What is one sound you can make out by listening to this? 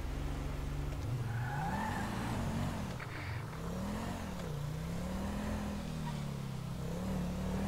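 A car engine revs up and accelerates, rising and falling in pitch.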